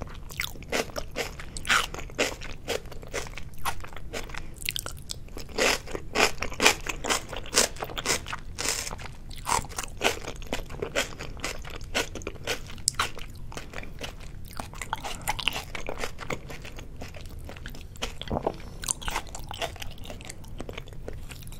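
A young woman chews food wetly and smacks her lips close to a microphone.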